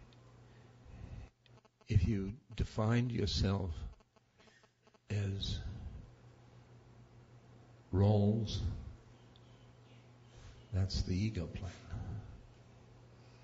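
An elderly man speaks slowly and haltingly into a microphone, with long pauses.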